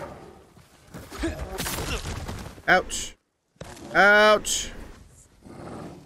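A bear growls and roars loudly.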